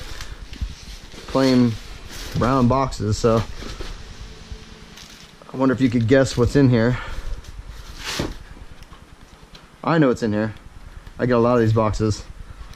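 A cardboard box rustles and scrapes.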